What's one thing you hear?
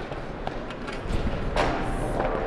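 A high jumper lands on a soft mat with a dull thud.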